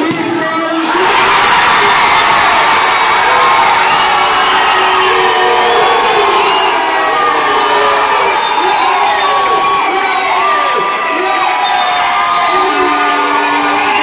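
A crowd roars loudly in celebration.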